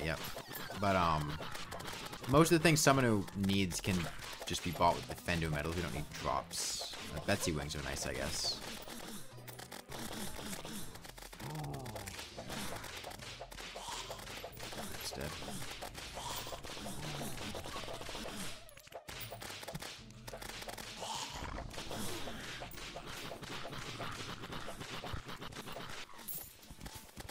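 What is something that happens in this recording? Magic attacks hiss and chime in quick bursts.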